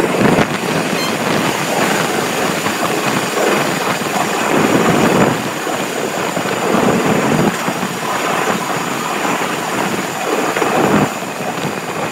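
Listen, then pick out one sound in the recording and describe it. A passing train roars by close alongside.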